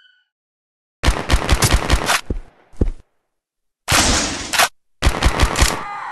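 A rifle fires in rapid bursts of loud shots.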